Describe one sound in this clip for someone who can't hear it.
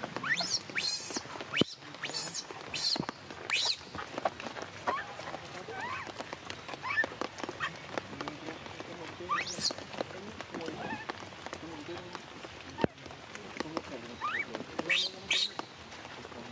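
A baby macaque shrieks and screams in distress.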